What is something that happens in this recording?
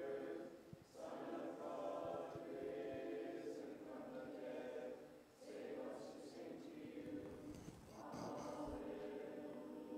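A choir sings a slow chant in a large echoing hall.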